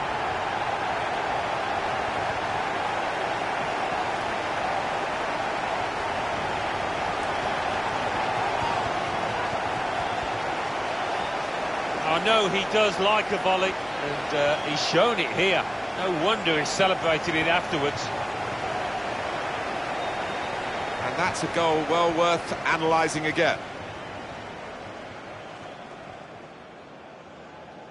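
A large stadium crowd roars and cheers steadily, then fades.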